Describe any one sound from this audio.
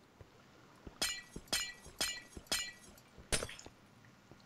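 A pickaxe chips at ice with quick, even taps.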